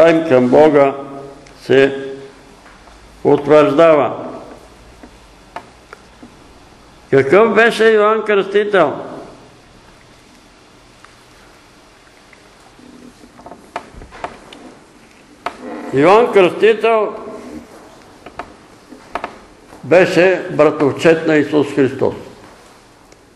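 An elderly man reads aloud calmly in short bursts with pauses.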